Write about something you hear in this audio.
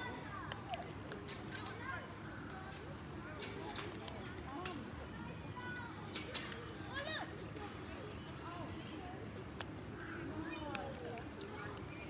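A lemur chews and crunches food up close.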